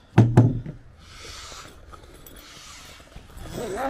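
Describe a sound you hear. A canvas boat cover rustles as it is pulled open.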